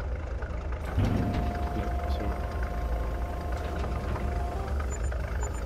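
Grain pours into a trailer with a steady rushing sound.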